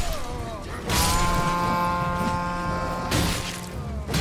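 A magic spell rings out with a bright shimmering chime.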